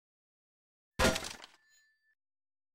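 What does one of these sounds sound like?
A heavy iron gate swings open with a metallic clank.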